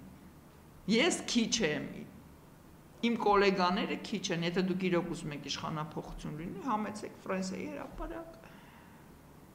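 A middle-aged woman speaks with animation into a microphone close by.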